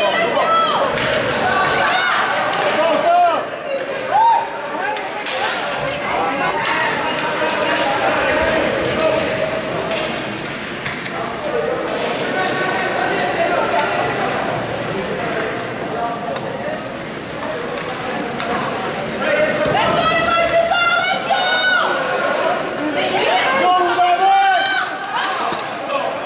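Young children shout and call out across an echoing rink.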